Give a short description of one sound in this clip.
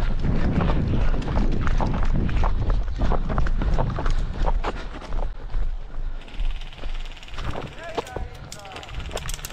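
Footsteps scuff on pavement at a steady walking pace.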